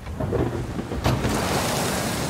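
A heavy blow lands with a sharp crash.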